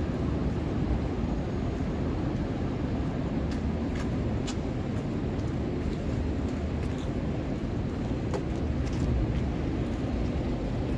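Steady city traffic rumbles outdoors.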